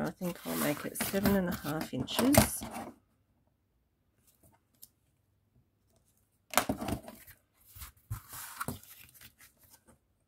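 A metal ruler slides and taps on cardboard.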